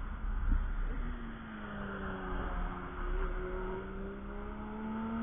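A second car engine whines as it approaches from a distance.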